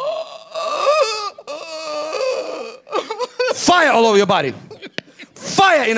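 A young woman cries out and wails emotionally into a microphone, close by.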